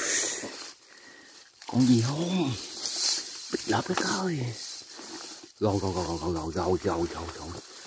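Dry grass rustles as hands push through it.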